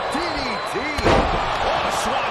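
A heavy body slams down onto a wrestling mat with a thud.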